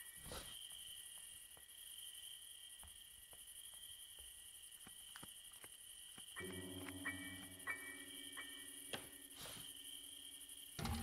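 Footsteps thud softly on a wooden floor.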